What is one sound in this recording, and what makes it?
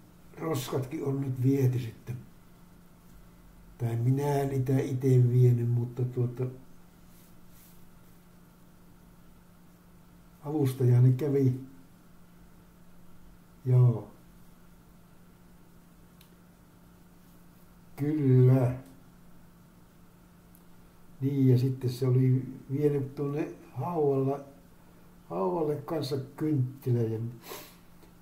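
A man speaks calmly in short bursts with pauses, close to a microphone.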